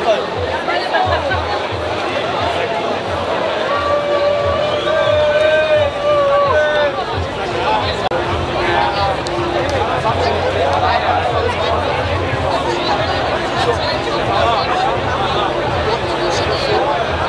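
Music with a thumping beat plays loudly over loudspeakers.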